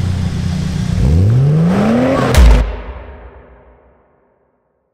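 A car engine revs up loudly and fades.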